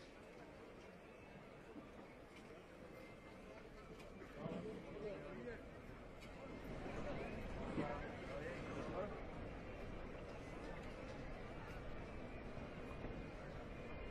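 A large crowd murmurs and chatters steadily outdoors.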